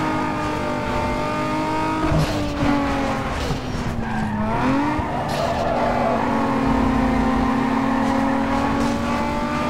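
A race car engine roars at high revs, dropping in pitch at gear changes and rising again.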